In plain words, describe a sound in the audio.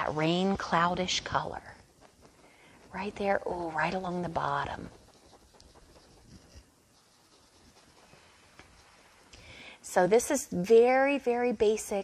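A paintbrush dabs and scrapes softly on canvas.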